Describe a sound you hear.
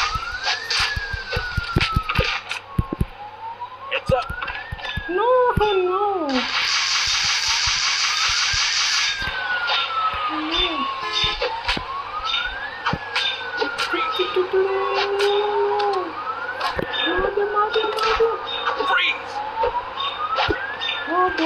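A police siren wails up and down throughout.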